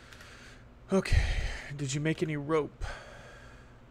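A man speaks briefly and loudly into a close microphone.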